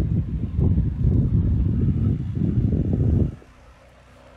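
Wind gusts outdoors, rumbling in bursts and then dropping away.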